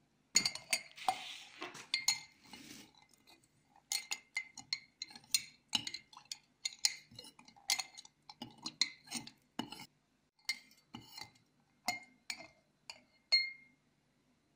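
A metal spoon clinks against a glass jar.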